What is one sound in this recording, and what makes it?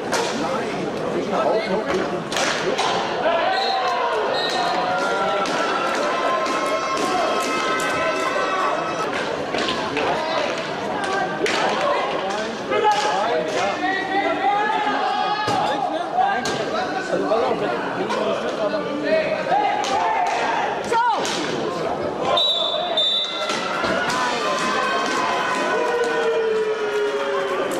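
Hockey sticks clack against a ball.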